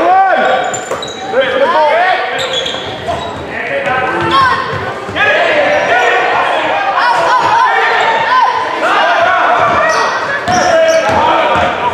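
A basketball thuds as it bounces on the floor.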